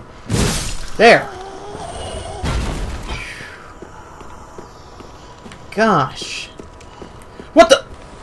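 A man exclaims with animation through a microphone.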